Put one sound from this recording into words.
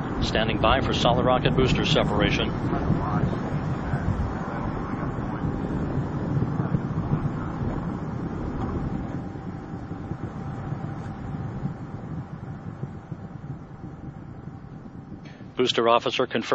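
Rocket engines roar with a deep, rumbling noise that slowly fades.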